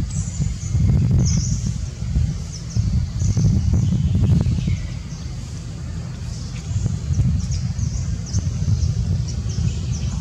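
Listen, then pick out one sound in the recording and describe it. A monkey chews food.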